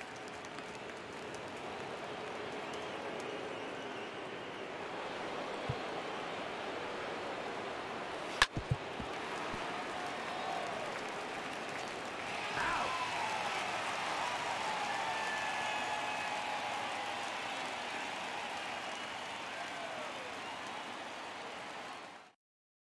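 A large crowd murmurs and cheers steadily in a big stadium.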